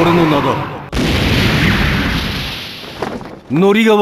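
Flames roar in a burst.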